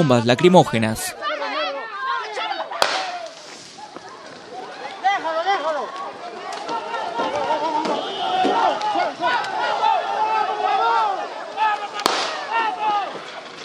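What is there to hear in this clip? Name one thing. A crowd of people shouts and yells outdoors.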